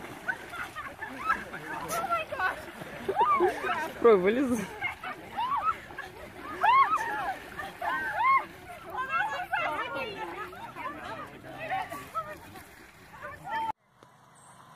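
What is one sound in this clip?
Water splashes as swimmers move about.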